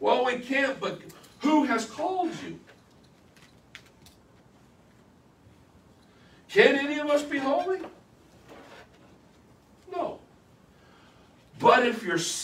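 A man speaks animatedly nearby, with pauses between phrases.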